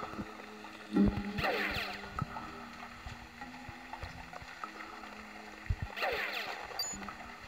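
A game gun fires with a sharp electronic blast.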